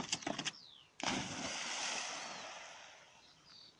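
A dog splashes into water.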